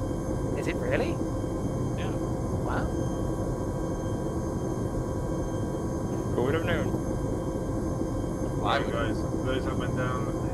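A helicopter engine drones with a steady low rumble.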